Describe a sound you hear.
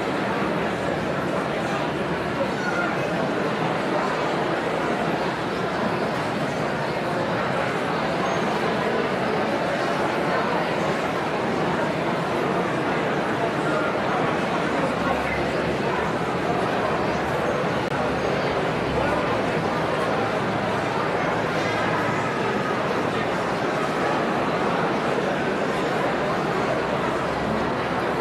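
A large crowd chatters in an echoing hall.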